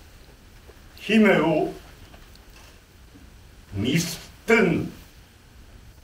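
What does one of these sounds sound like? An elderly man speaks with animation from a stage in a hall with some echo, in short bursts.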